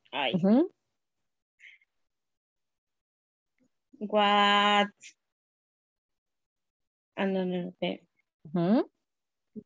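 A young woman speaks through an online call in short, drawn-out phrases.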